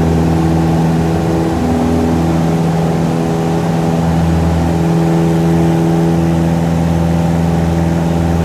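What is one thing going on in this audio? A small propeller plane's engine drones loudly and steadily.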